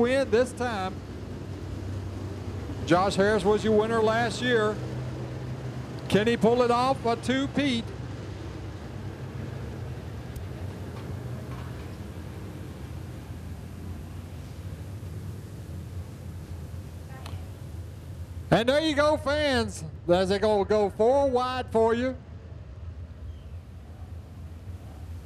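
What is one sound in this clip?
Race car engines rumble steadily.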